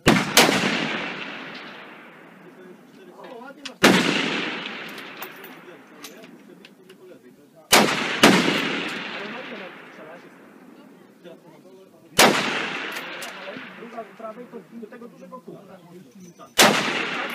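Rifles fire loud sharp shots outdoors, each blast echoing away slowly.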